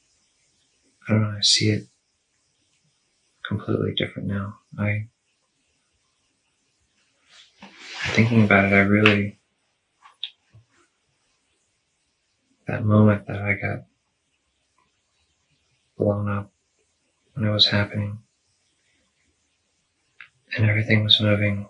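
A young man speaks slowly and quietly, in short phrases with long pauses.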